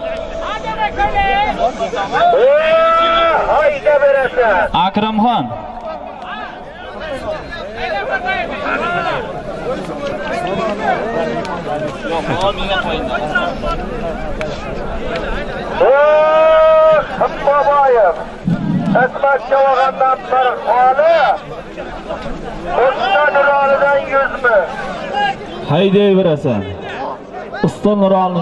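A crowd of men shouts and calls out loudly nearby.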